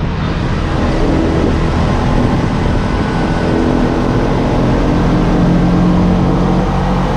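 Traffic hums past on a road.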